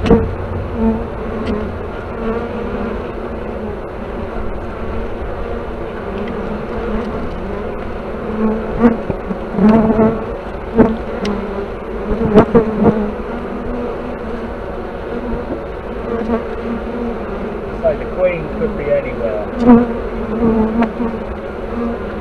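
Many bees buzz and hum steadily close by.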